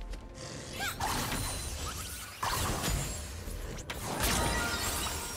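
Heavy blows and bursts of energy hit in quick succession.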